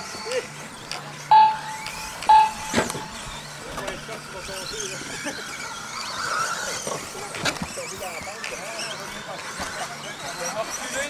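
Radio-controlled stadium trucks whine around a dirt track.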